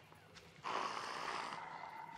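A paddle dips and splashes through calm water.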